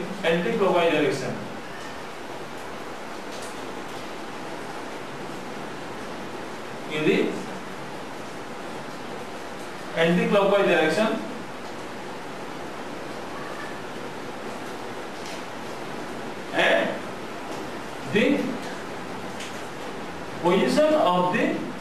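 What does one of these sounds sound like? A man explains in short phrases with long pauses, close to the microphone.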